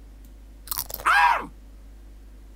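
A cartoon parrot squawks in a high, warbling voice.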